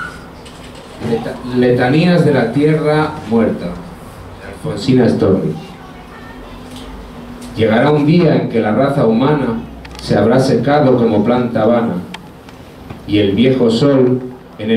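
A young man speaks into a microphone, reading aloud through a loudspeaker in an echoing room.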